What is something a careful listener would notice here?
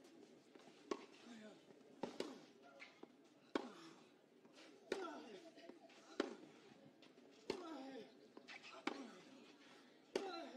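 A tennis ball is struck sharply back and forth in a rally.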